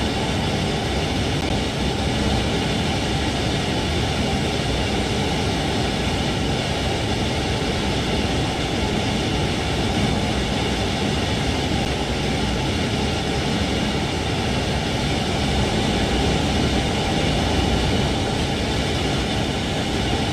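A train rumbles steadily along the rails at speed.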